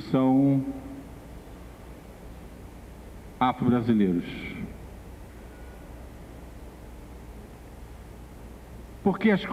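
A middle-aged man sings slowly into a microphone, in long drawn-out phrases with pauses between them.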